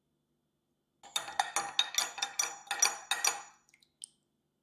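A metal spoon stirs liquid, clinking rapidly against a glass jug.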